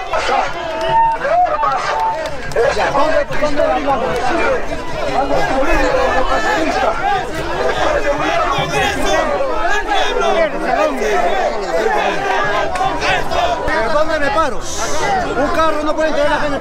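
A middle-aged man shouts with animation close by.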